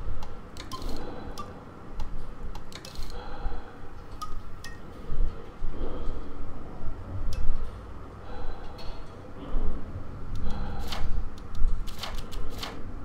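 Short soft clicks sound as menu options change.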